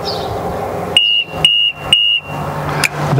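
A lift's alarm beeps three times.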